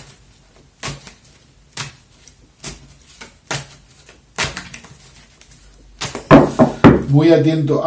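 Playing cards are shuffled and tapped in short bursts.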